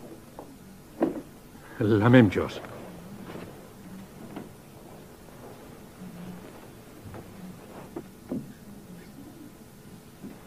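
A man speaks and laughs nearby in a calm, friendly voice.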